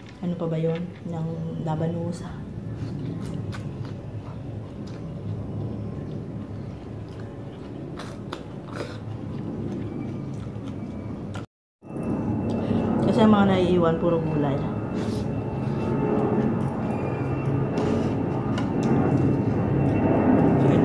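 Fingers squish and pick at soft food.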